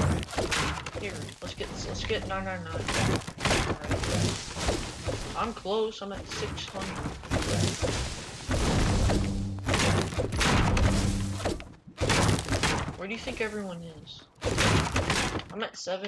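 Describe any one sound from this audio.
A tool chops repeatedly at a leafy hedge and wooden boards with quick, crunchy thuds.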